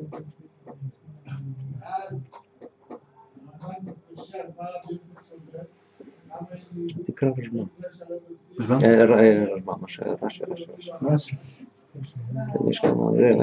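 An elderly man speaks calmly and steadily, close to a microphone.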